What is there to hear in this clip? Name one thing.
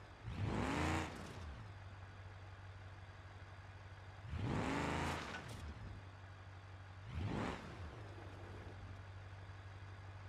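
An engine hums steadily at a low pitch.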